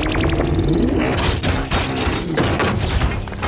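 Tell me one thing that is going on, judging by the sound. Metal crashes and crunches in a violent smash.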